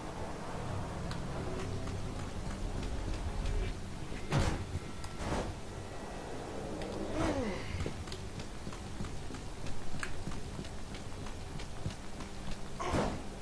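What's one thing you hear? Heavy footsteps thud quickly.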